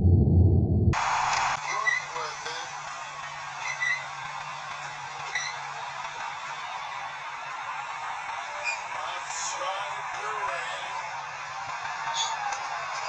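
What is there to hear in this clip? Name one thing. A crowd cheers in a large arena.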